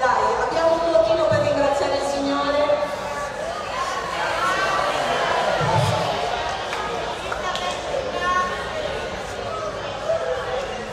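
A group of people sing together in a large echoing hall.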